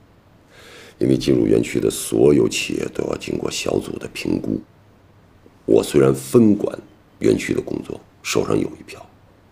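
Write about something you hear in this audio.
A middle-aged man talks calmly close by.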